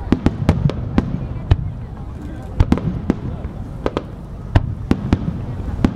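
Low booms from the fireworks rumble and echo between the bangs.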